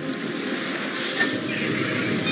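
A magic spell shimmers with a bright whoosh.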